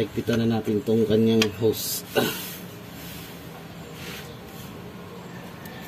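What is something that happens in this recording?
A wrench clicks against a bolt.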